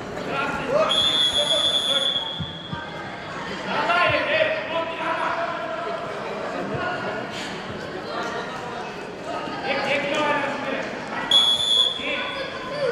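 Wrestlers' feet thump and shuffle on a mat.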